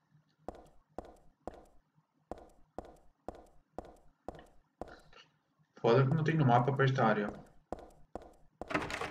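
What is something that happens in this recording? Footsteps thud steadily on a hard floor in an echoing room.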